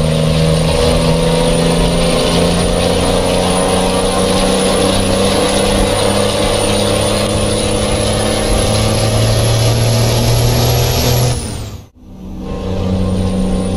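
A heavy truck engine rumbles and drones steadily, briefly cutting out near the end.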